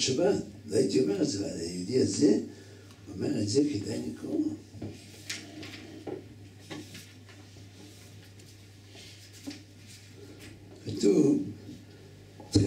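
An elderly man speaks into a microphone, reading out in a measured voice.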